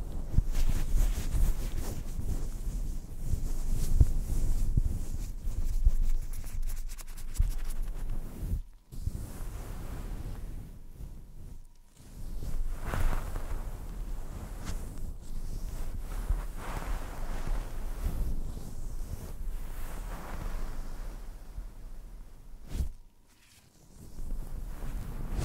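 Gloved hands rub and scratch a fluffy microphone cover up close, with soft muffled rustling.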